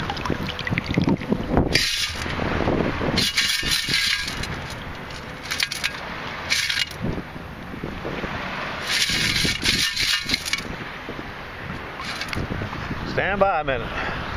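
Pebbles rattle in a perforated metal scoop.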